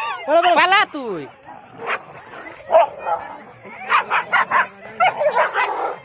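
Dogs growl and snarl as they fight.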